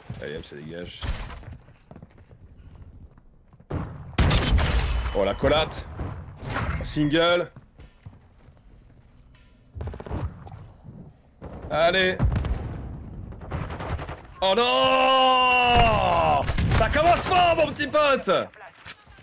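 A man speaks excitedly into a close microphone, at times shouting.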